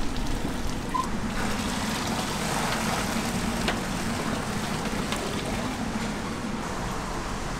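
Thick bone broth pours from a pot through a wire mesh strainer into a metal basin.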